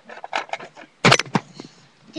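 A plastic toy door snaps shut with a sharp clack.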